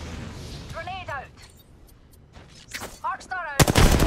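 A rifle fires gunshots in short bursts.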